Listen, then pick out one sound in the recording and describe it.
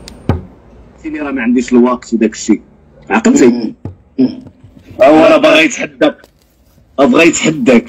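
A man talks loudly and with animation through a phone speaker.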